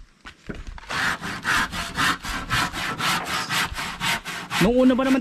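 A hand saw cuts through wood with quick strokes.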